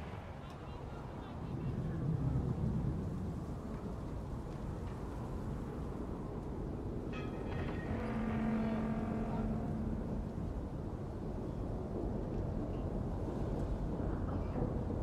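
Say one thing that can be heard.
A low city hum rumbles steadily in the background.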